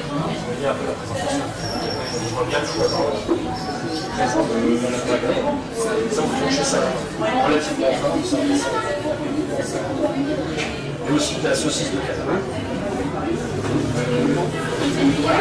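Many adult voices chatter at once in a busy crowd.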